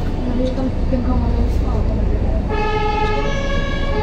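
A truck passes close by.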